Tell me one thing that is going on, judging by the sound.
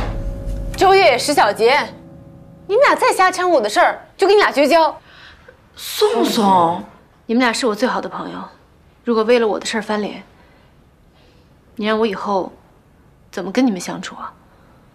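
A young woman speaks earnestly and close by.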